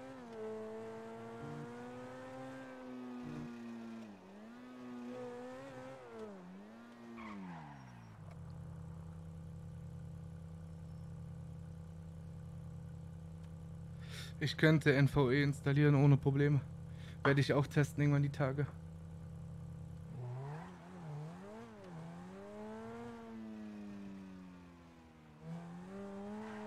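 A sports car engine revs and changes pitch as the car drives.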